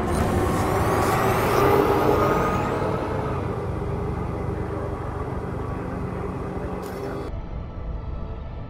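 A spaceship engine rumbles and hums steadily.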